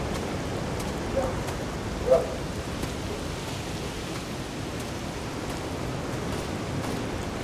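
Wind blows steadily through tall trees outdoors.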